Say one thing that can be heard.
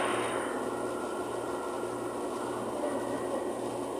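Thick liquid pours and splashes softly onto a cold metal plate.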